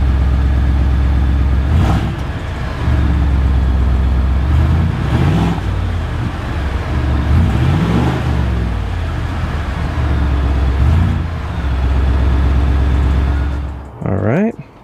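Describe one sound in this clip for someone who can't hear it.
A truck engine rumbles deeply at idle.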